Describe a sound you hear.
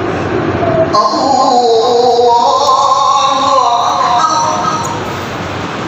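A man recites loudly through a microphone in a large echoing hall.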